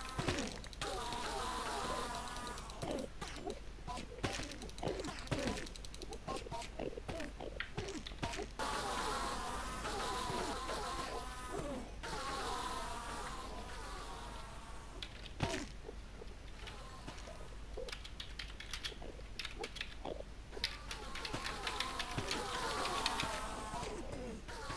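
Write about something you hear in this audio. Mechanical pistons clack and thump repeatedly.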